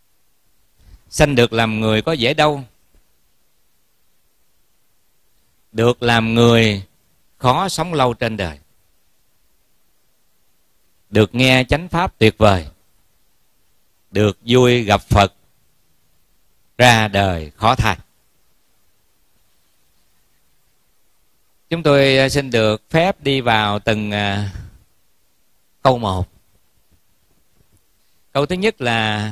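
A man speaks calmly into a microphone, in short phrases with pauses between them.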